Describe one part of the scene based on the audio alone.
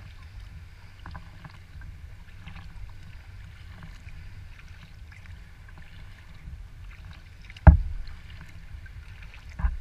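Water laps softly against a kayak's hull.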